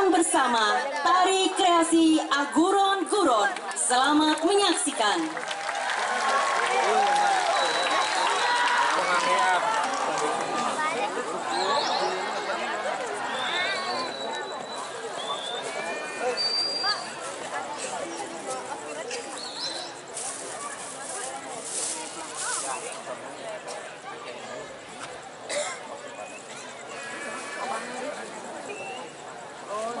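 A large crowd chatters and murmurs all around outdoors.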